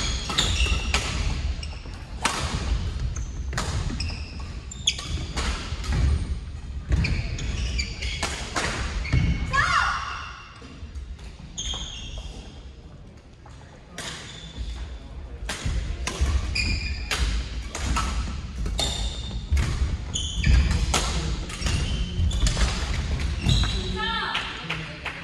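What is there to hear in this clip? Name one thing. Players' footsteps thud on a wooden floor.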